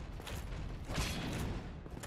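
A sword clangs against metal armour.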